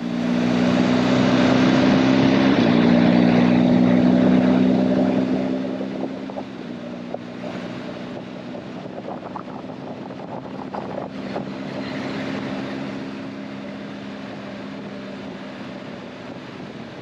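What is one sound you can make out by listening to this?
A motorcycle engine hums steadily, louder at first and then easing off.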